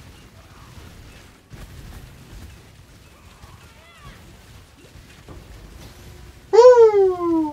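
Magic effects crackle and hum.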